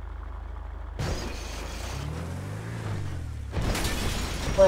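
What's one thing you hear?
A truck engine roars.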